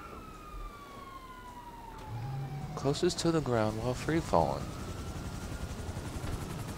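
A helicopter's engine whines as its rotor spins.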